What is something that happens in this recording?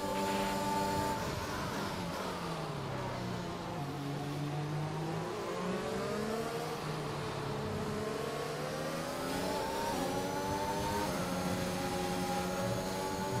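A racing car engine whines loudly, dropping in pitch as it slows and then rising again as it speeds up.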